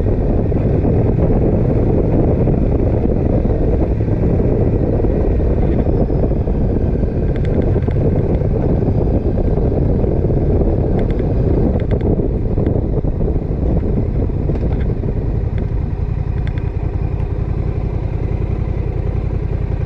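Wind roars loudly against the microphone.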